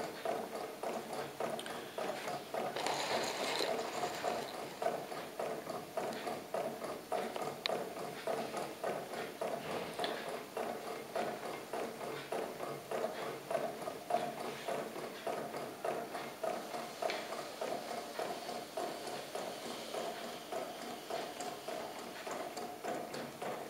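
A small engine runs with a steady rapid clicking and whirring.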